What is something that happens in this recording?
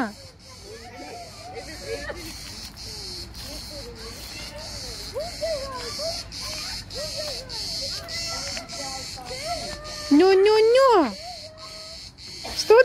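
A young girl chatters and sings in a high voice nearby.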